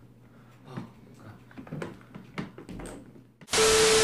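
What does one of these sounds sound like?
A chair creaks and thumps as it is moved.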